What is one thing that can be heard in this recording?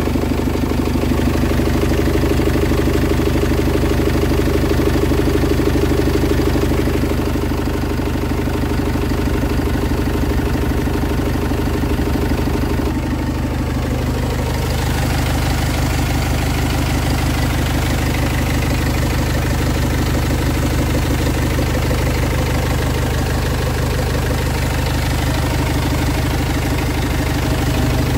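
A diesel engine idles with a steady, low rumble close by.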